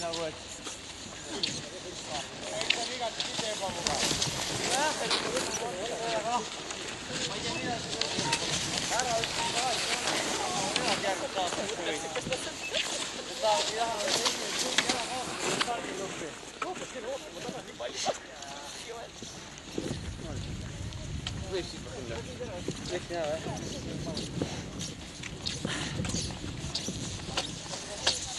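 Skis swish and scrape over snow as skiers glide past close by.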